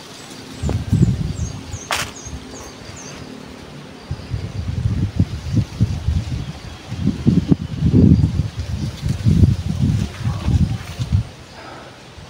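Wind blows in rough gusts outdoors.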